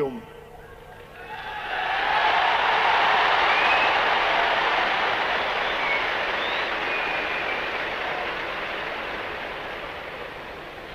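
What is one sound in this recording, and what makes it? A huge crowd cheers and applauds loudly outdoors.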